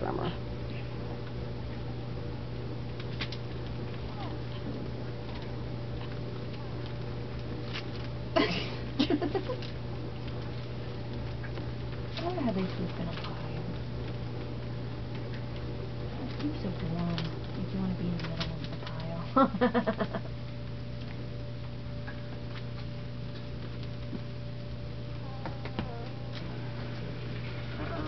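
Puppies shuffle and scrabble on a blanket.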